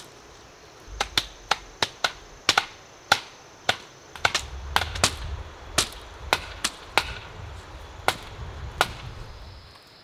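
A mallet knocks sharply on wooden fence posts, again and again.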